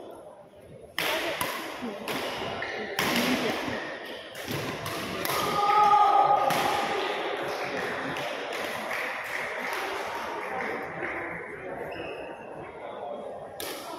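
Badminton rackets hit shuttlecocks with sharp pops in a large echoing hall.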